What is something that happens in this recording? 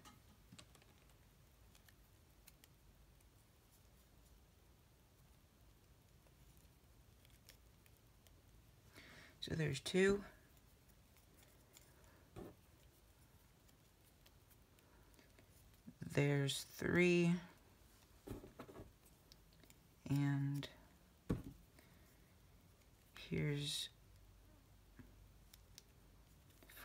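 A small hook clicks and scrapes softly against rubber bands.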